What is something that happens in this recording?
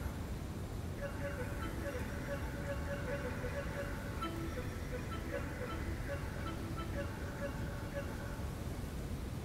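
Soft, bell-like musical chirps ring out repeatedly in short bursts.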